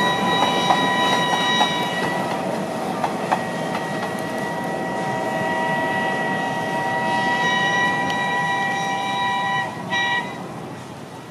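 A steam locomotive's whistle blows loud and long, then cuts off.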